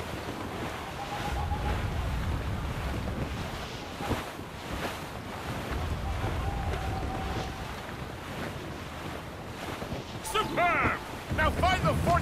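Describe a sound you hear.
Waves rush against a wooden ship's hull.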